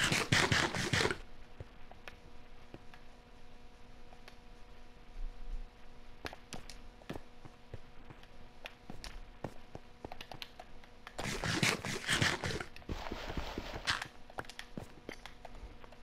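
Footsteps tap on stone in quick, light steps.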